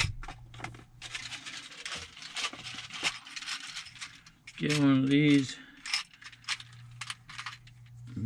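Small plastic parts rattle in a box.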